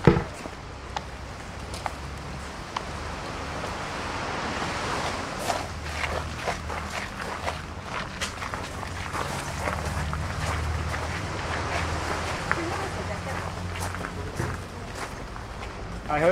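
Footsteps tap on paving outdoors.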